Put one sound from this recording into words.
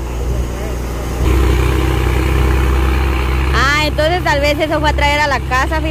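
A heavy truck engine rumbles low and steadily nearby.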